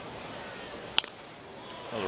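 A baseball pops into a catcher's mitt.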